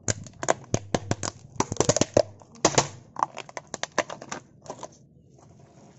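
A car tyre rolls over brittle plastic, which cracks and snaps loudly.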